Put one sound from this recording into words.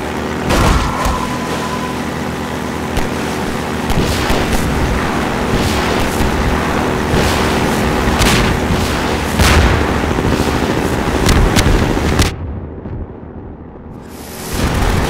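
A boat engine roars steadily at speed.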